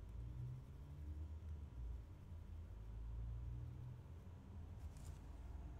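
A colored pencil scratches softly on paper.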